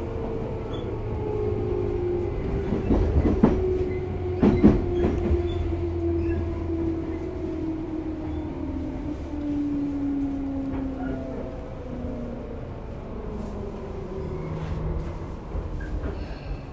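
An electric train approaches with a motor whine that slowly drops in pitch.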